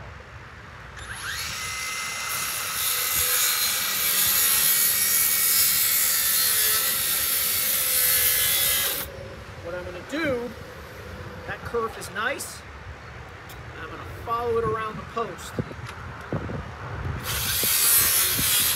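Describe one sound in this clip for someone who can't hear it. A cordless circular saw whines loudly as it cuts through a wooden post.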